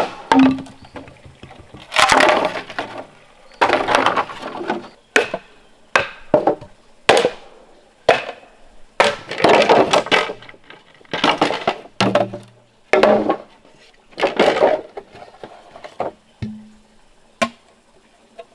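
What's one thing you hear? A blade chops into bamboo with sharp, hollow knocks.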